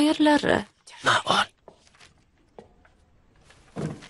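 Paper rustles as a sheet is unfolded.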